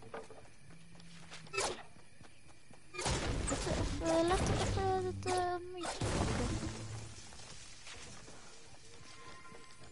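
Wooden ramps snap into place with quick clattering knocks.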